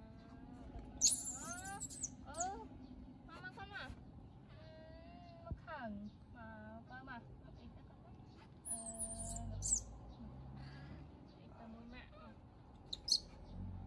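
A baby monkey screeches in shrill bursts.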